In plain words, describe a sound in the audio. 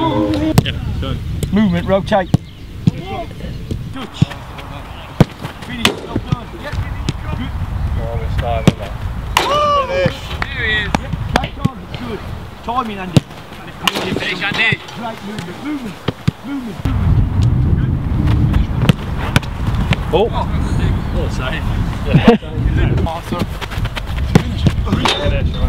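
Footballs thump sharply as they are kicked.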